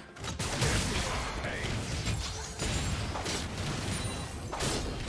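Magic blasts whoosh and crackle in a busy fight.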